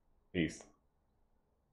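A young man speaks a short exclamation close to a microphone.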